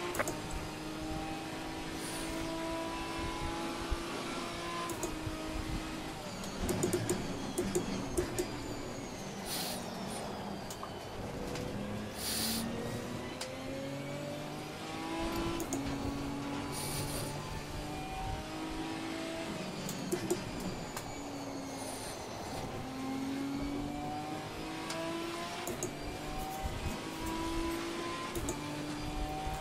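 A race car engine revs up and down through the gears.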